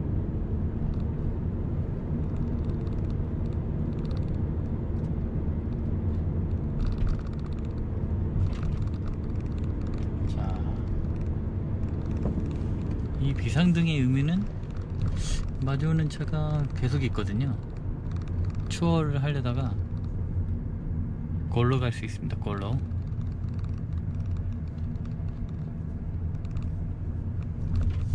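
A car's engine hums and its tyres roll steadily on the road, heard from inside the car.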